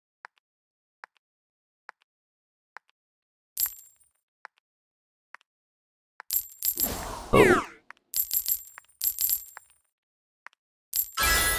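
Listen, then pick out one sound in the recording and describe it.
Light footsteps tap at a steady pace.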